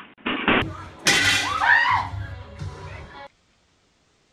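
A young woman cries out close by.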